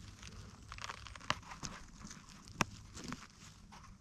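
A mushroom stem snaps as it is twisted out of the ground.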